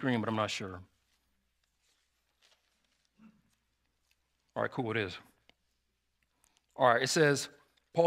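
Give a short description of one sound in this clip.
A man speaks calmly and clearly into a microphone, in short phrases with pauses.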